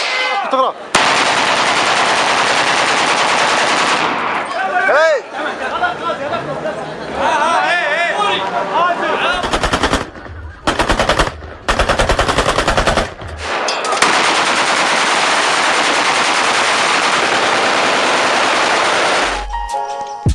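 Rifles fire rapid bursts of shots nearby.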